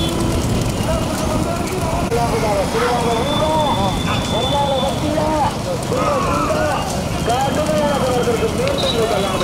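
Motorcycle engines drone close behind.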